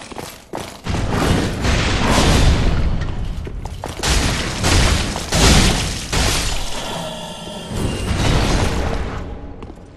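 Swords swing and strike with heavy metallic hits.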